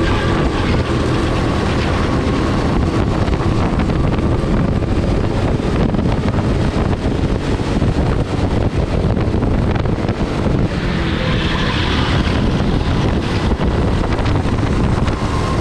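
A kart engine roars loudly and steadily up close.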